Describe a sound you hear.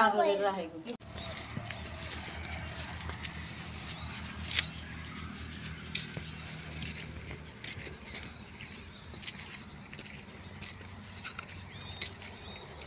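A buffalo's hooves and body rustle through dry grass close by.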